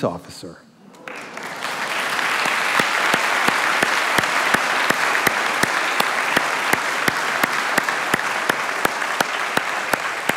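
A large audience applauds in a large hall.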